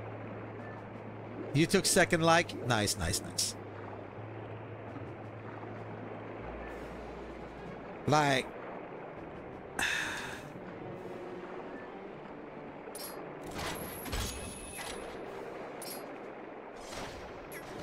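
Giant tentacles swish and whoosh through the water.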